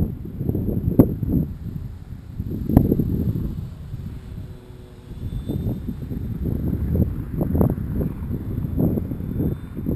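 An electric model airplane whines far off overhead.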